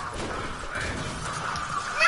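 A pickaxe swings through the air.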